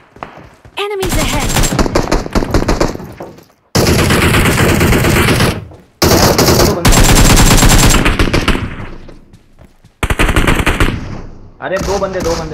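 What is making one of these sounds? Rapid gunfire bursts out loudly and repeatedly.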